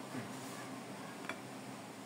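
A hand digs into a plate of rice.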